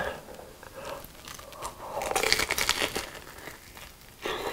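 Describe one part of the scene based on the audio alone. A crispy fried snack crunches loudly as a young man bites into it close to a microphone.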